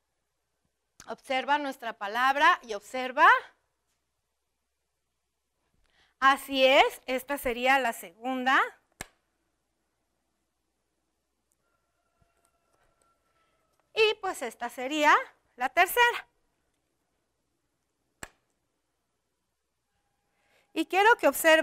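A woman speaks clearly and with animation into a close microphone, in short bursts with pauses.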